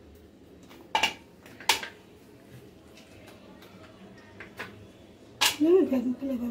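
Small chocolates clink onto a metal plate.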